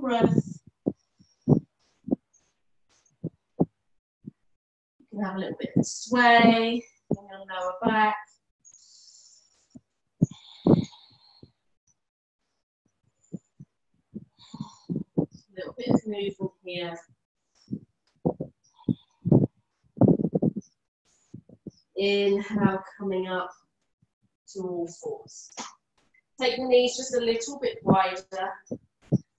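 A woman speaks calmly and slowly over an online call.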